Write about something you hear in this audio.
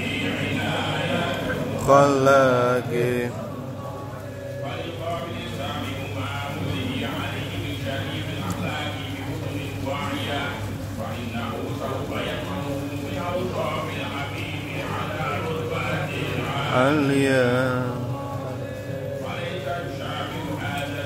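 A man speaks loudly through a loudspeaker, with an echo like a large hall.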